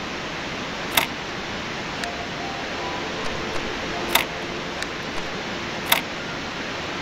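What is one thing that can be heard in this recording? Puzzle pieces click into place in a game.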